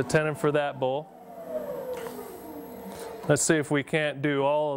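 A lathe motor winds down and stops.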